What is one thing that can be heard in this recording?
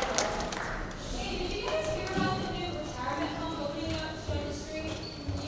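Teenagers talk with animation in a large, echoing hall.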